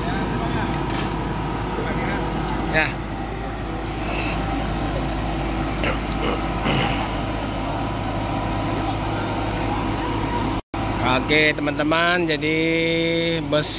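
A bus engine idles and rumbles nearby.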